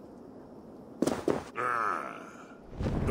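A man speaks calmly and gravely, close by.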